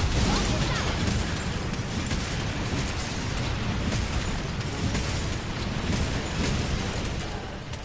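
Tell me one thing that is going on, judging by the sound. A sword swings and hits with sharp cracks.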